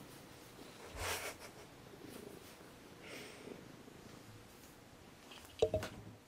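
Objects knock softly on a desk.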